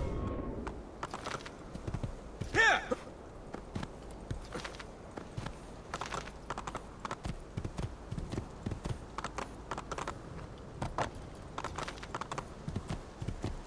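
Hooves gallop in a quick rhythm on a dirt path.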